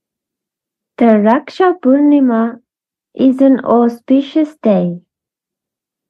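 A woman speaks cheerfully over an online call.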